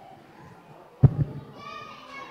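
A microphone thumps loudly as it is handled.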